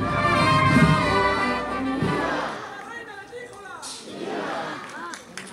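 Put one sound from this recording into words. A large crowd sings together outdoors.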